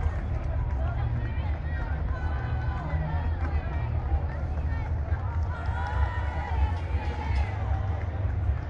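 Loud music plays from a passing parade float.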